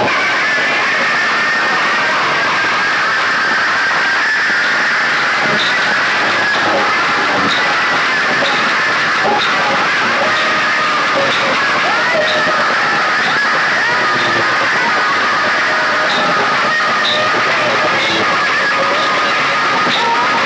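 Loud music blasts from a big speaker stack, heavily distorted.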